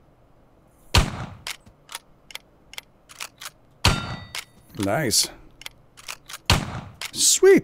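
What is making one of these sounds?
A gun fires sharp single shots.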